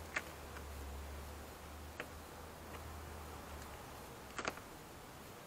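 Plastic clips click and snap as a door's inner panel is pried loose.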